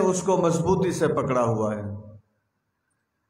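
A man speaks loudly through a microphone and loudspeaker.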